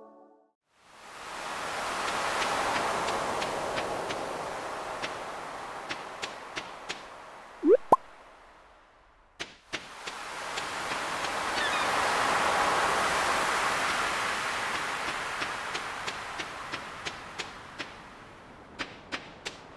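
Waves wash gently onto a sandy shore, swelling and fading.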